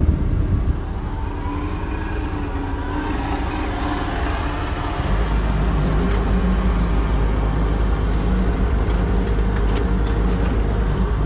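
An excavator's diesel engine rumbles steadily, close by, and grows louder and deeper partway through.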